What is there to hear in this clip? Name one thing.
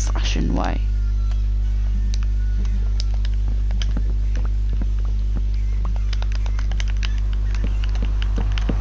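Wooden blocks knock and crack as they are broken in a game.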